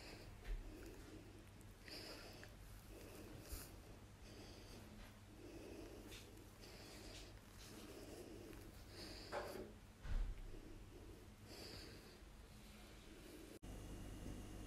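A baby makes soft sucking and cooing sounds close by.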